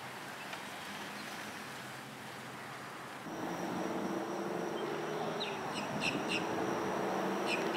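Wind rustles through tall grass and reeds outdoors.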